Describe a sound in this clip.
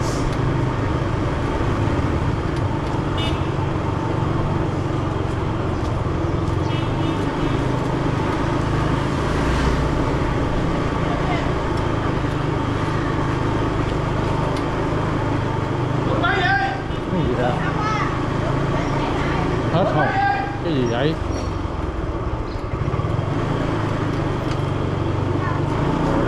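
A motorbike engine hums steadily up close.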